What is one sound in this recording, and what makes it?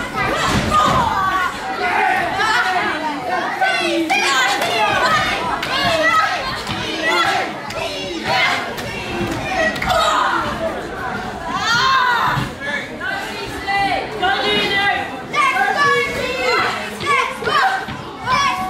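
A young woman shouts with effort.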